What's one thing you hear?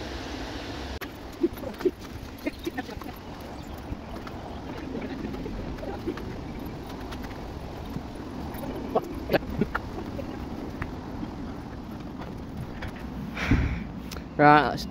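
Footsteps scuff along a paved path.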